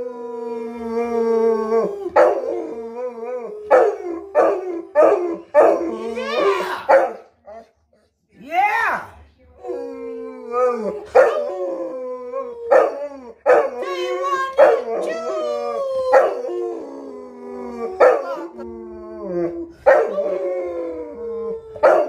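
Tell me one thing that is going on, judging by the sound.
A dog howls long and loud, close by.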